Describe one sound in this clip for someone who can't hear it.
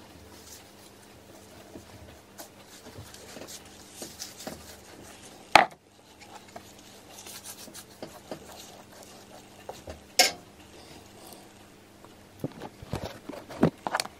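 A paintbrush brushes softly against a surface.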